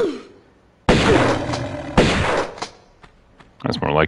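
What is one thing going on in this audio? Pistol shots bang in quick succession.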